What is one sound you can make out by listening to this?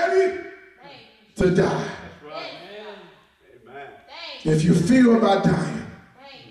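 A man preaches with animation into a microphone in an echoing hall.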